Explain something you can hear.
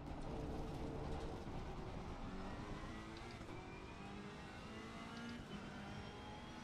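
A racing car engine revs hard and climbs through the gears.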